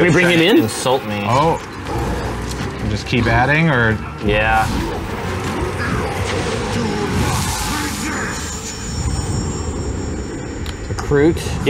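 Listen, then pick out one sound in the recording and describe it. Men talk with animation close to microphones.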